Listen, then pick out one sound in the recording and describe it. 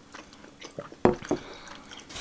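A mug knocks down onto a table.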